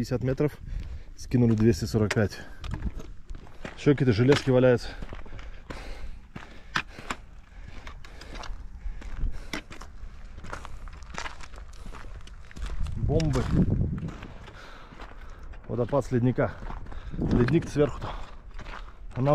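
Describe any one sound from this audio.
Footsteps crunch on a stony path.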